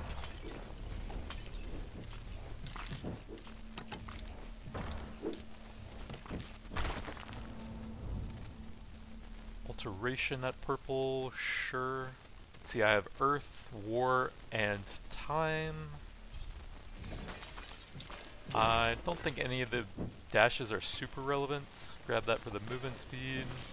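Blades slash and strike in a fast, noisy fight.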